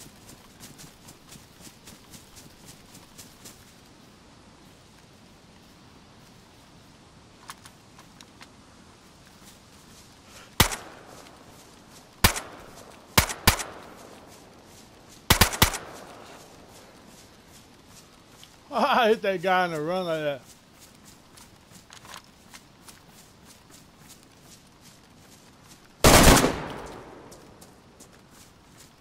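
Footsteps rustle through undergrowth.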